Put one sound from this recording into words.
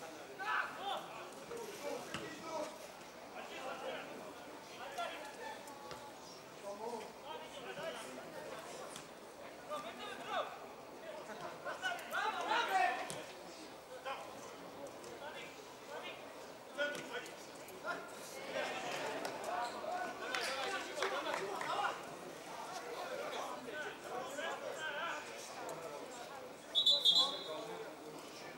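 Players shout to each other across an open pitch outdoors.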